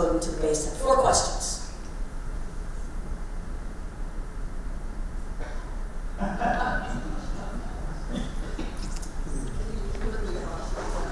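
A woman speaks into a microphone, with pauses.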